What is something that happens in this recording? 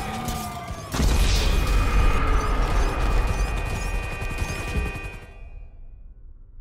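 A deep boom bursts out and rumbles before fading away.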